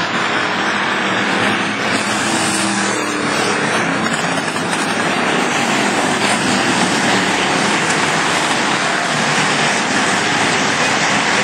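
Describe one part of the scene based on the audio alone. Race car engines roar loudly around a dirt track.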